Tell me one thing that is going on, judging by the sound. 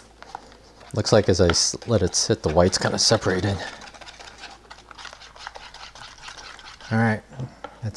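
A whisk clatters against a bowl as eggs are beaten.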